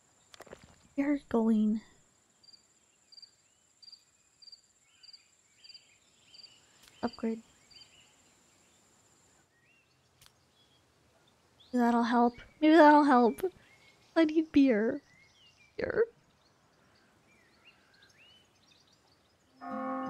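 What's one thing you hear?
A young woman talks with animation into a microphone in short bursts.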